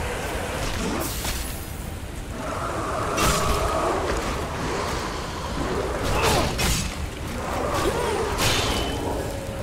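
A sword slashes and strikes with sharp hits.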